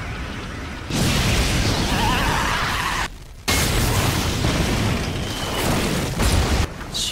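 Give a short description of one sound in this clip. A loud rushing roar swells and bursts.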